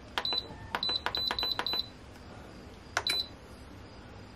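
An electronic appliance beeps repeatedly as buttons are pressed.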